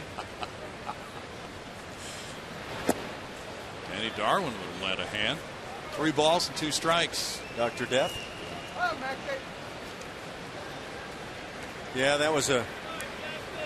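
A crowd murmurs steadily in a large open ballpark.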